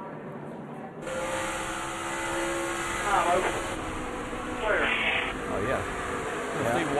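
A race car engine roars loudly up close at high speed.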